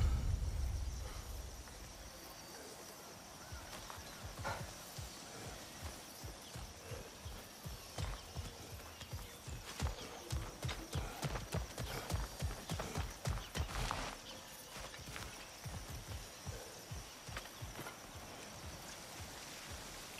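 Heavy footsteps crunch on gravel and dirt at a steady pace.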